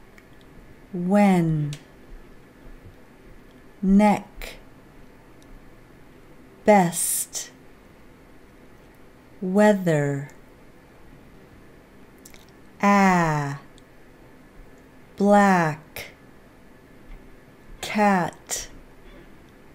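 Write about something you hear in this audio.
A woman speaks single words slowly and clearly into a close microphone, with pauses between them.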